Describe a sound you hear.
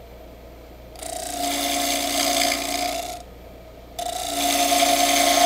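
A lathe tool cuts into spinning wood with a loud scraping whine.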